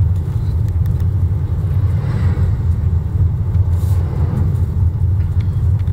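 A bus passes by on the road.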